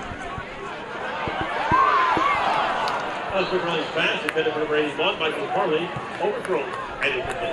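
A crowd cheers loudly in an open stadium.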